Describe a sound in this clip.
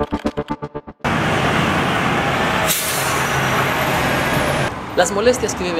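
Heavy trucks and cars rumble past on a road.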